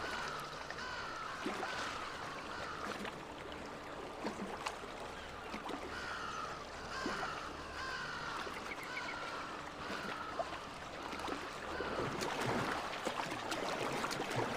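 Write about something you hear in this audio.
Water splashes steadily as a swimmer strokes through it.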